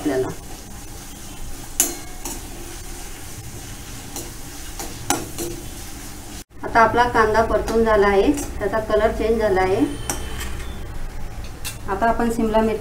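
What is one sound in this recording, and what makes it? Onions sizzle in hot oil.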